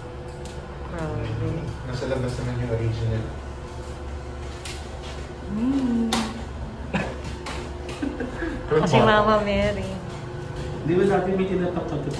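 Young men talk casually nearby.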